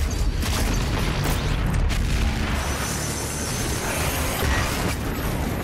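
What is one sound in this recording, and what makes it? An explosion booms and crackles.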